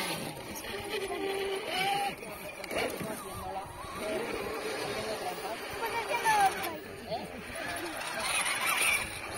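Children and adults talk nearby outdoors.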